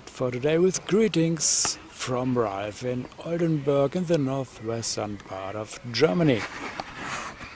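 A middle-aged man talks calmly, close up, outdoors.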